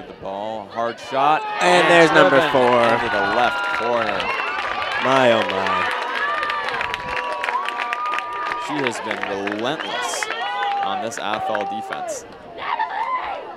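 A crowd of spectators cheers and screams loudly outdoors.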